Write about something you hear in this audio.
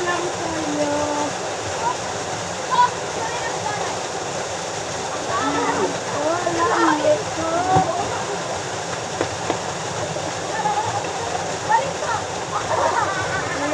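Water splashes as swimmers move in a river.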